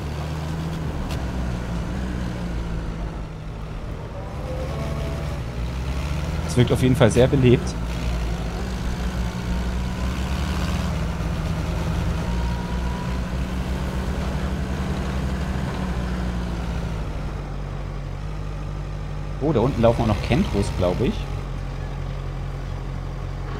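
A vehicle engine hums steadily as it drives over rough ground.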